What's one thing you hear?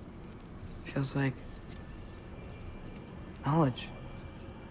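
A young man speaks a few short words close to a microphone.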